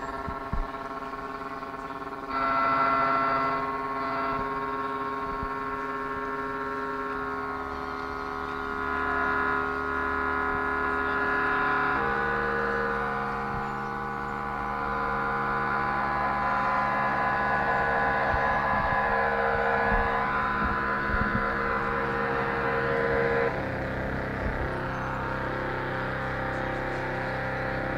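An electric guitar plays long, held notes that change every few seconds.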